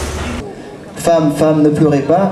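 A live band plays music with drums and guitar.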